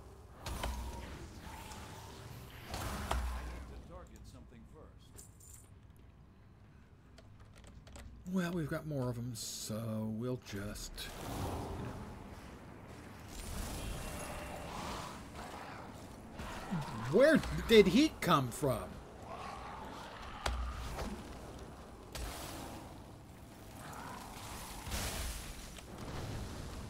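Magic spells whoosh and crackle in a game.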